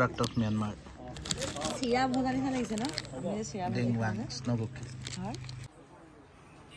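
A plastic wrapper crinkles in a hand.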